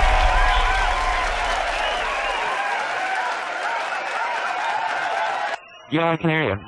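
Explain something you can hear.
A rock band plays loud music with electric guitar.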